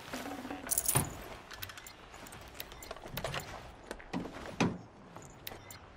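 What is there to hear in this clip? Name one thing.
Short clicks and chimes sound as items are picked up one after another.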